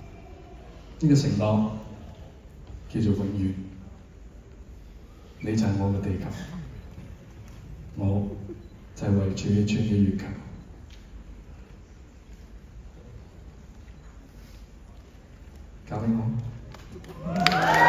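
A man speaks calmly through a microphone in a large hall, with pauses.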